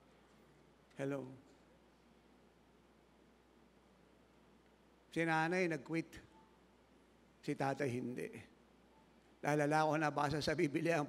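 An elderly man speaks with animation through a microphone, in short bursts with pauses.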